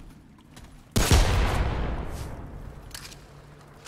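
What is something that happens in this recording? A gunshot bangs loudly and echoes away.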